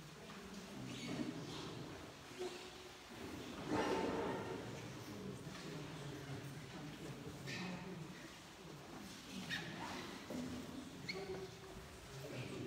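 Several adults talk quietly in a small echoing room.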